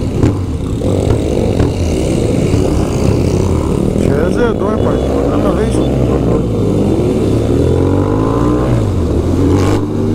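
Other motorcycle engines drone nearby.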